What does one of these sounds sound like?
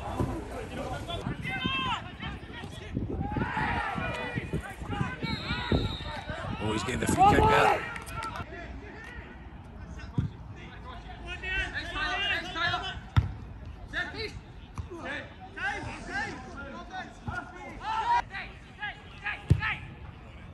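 A football is kicked with sharp thuds.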